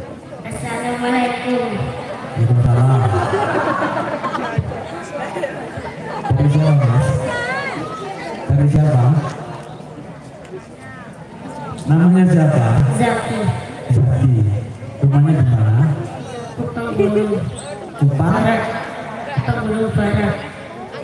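A man sings loudly through a large outdoor sound system.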